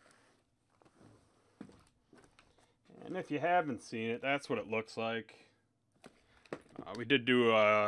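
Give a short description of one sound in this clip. Cardboard boxes knock and rustle as hands stack and handle them.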